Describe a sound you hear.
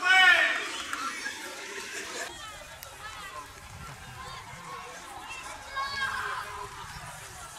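A crowd of men and women talks and shouts outdoors.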